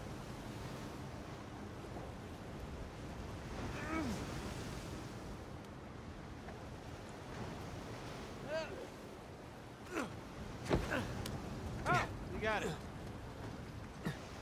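Rough sea waves surge and splash steadily.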